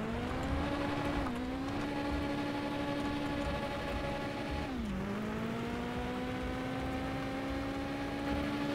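Tyres rumble over a rough gravel road.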